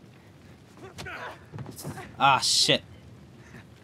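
A young woman groans and cries out in pain.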